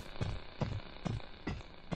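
An electric energy blast crackles and bursts.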